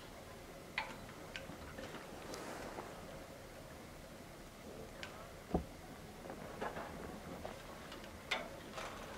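Claws scrape and clink on metal bars.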